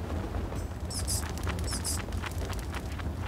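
A loud explosion bursts with a crackle.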